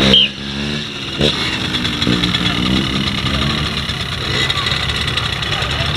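A small motorbike engine idles and revs nearby.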